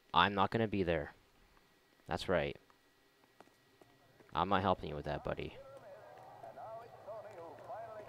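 Footsteps tap on pavement.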